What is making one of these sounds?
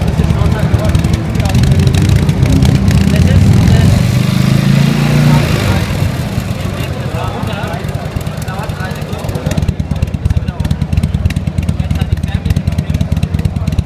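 A motorcycle engine rumbles loudly with a fast, uneven beat.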